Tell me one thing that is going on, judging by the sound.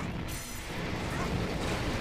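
Laser shots zap and buzz.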